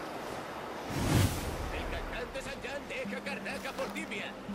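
A magical whoosh swells and bursts.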